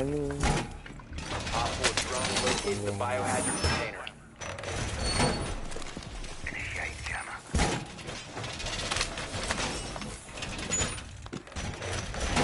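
Heavy metal panels clank and bang as they are fixed into place.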